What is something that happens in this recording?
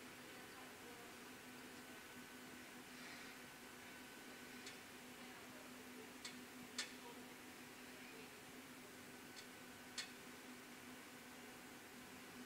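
A glass furnace roars steadily.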